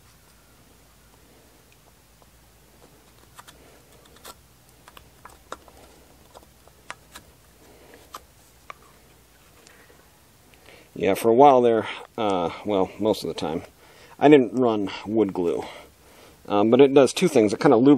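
Thin wooden sticks tap and click against a block of wood.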